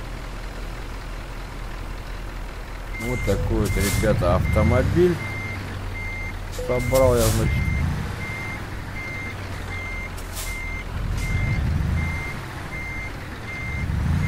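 A truck engine idles with a low, steady rumble.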